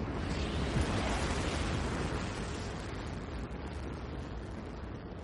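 Motorcycle engines idle and rev.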